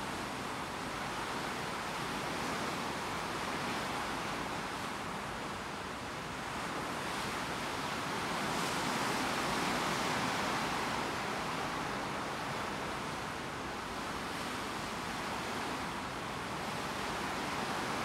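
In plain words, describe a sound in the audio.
Wind rushes steadily past outdoors.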